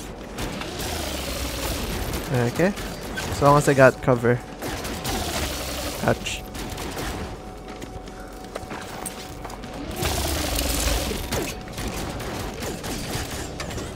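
A laser gun fires in short, sharp bursts.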